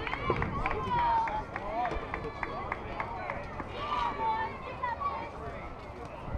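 People shout and cheer from a distance outdoors.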